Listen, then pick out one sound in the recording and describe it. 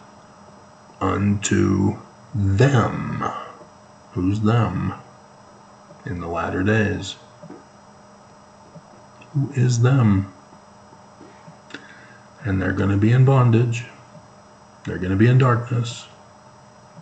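A middle-aged man speaks close to a microphone in short, earnest bursts with pauses.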